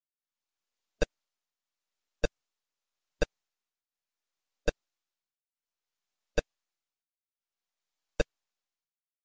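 A retro video game makes short, sharp electronic clicks now and then.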